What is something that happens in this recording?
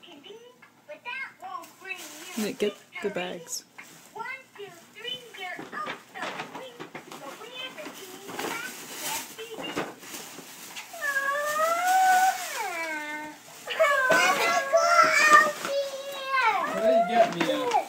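Adults and children talk nearby with animation.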